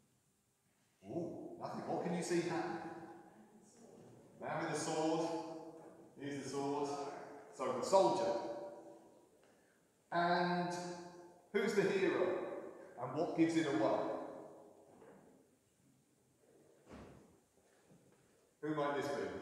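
A man speaks calmly and clearly in a reverberant hall.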